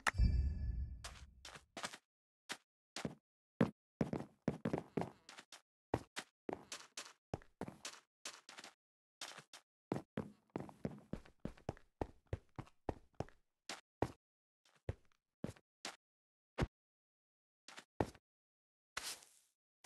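Footsteps crunch on sand at a quick walking pace.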